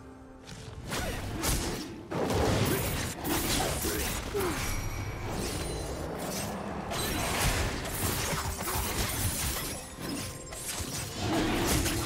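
Game weapons clash and magic blasts crackle in a fast fight.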